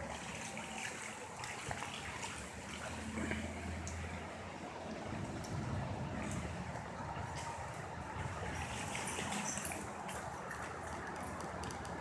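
Rain patters steadily on wet ground.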